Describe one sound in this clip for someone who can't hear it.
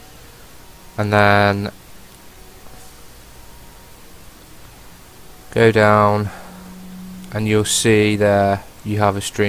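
A young man talks into a microphone in short bursts.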